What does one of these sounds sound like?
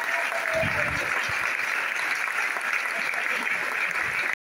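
An audience claps and applauds nearby.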